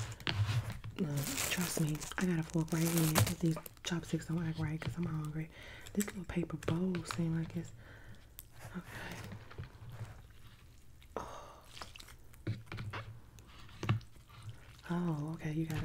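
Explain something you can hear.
A woman speaks softly and closely into a microphone.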